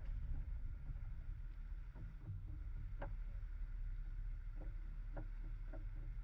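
A vehicle engine idles with a low, steady rumble.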